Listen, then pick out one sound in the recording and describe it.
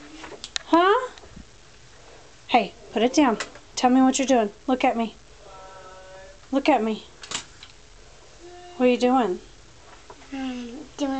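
A young girl speaks close by in a high, lively voice.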